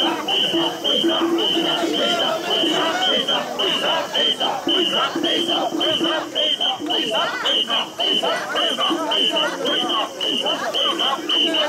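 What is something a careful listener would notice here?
A large crowd of men chants loudly in a steady rhythm outdoors.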